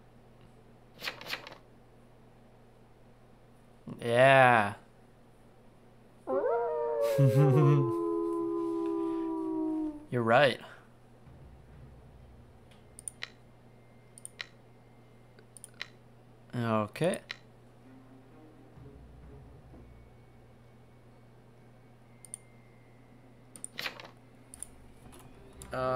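Short electronic game sound effects chime and swoop now and then.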